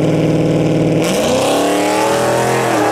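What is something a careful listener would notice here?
A turbocharged V8 drag car revs up at the start line.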